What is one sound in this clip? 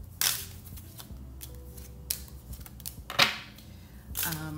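Playing cards slide and slap down onto a wooden table.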